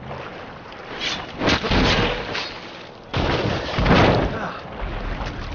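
A knife cuts wetly through flesh.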